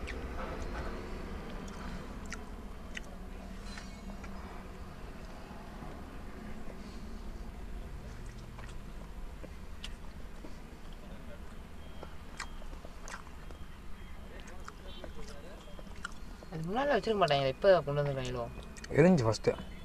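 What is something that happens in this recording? Crunchy fried food crackles as young men bite into it.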